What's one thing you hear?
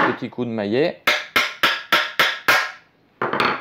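A hammer taps sharply on metal several times.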